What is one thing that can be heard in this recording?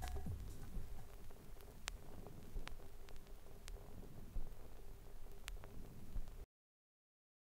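A vinyl record crackles and pops as it plays.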